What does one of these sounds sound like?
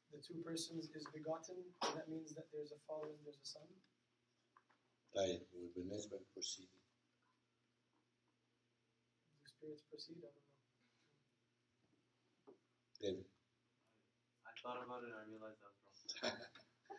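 An elderly man speaks calmly, pausing between phrases.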